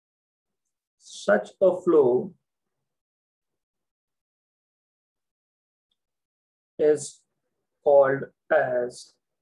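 A young man speaks calmly and slowly into a microphone, with long pauses.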